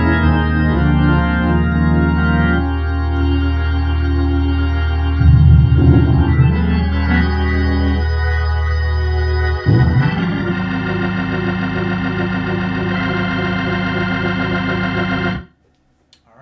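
An electric organ plays sustained chords, then stops abruptly.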